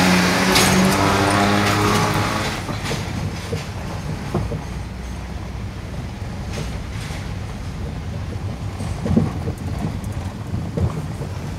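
Tyres rumble on a rough road.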